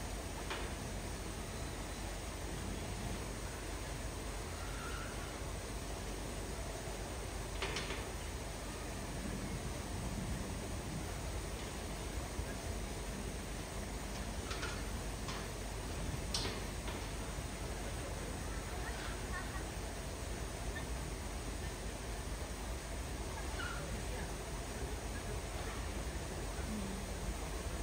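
A rubber tyre thumps and knocks against a metal gate.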